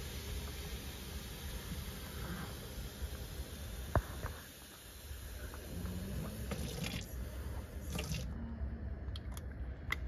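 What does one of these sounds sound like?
Water runs from a tap into a bottle.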